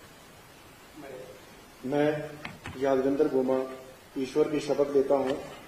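A middle-aged man reads out into a microphone.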